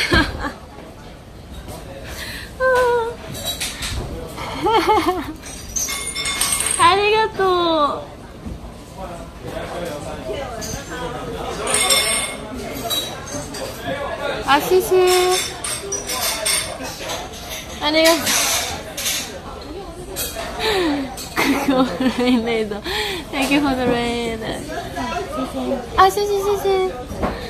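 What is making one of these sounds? A young woman speaks excitedly and squeals close to a microphone.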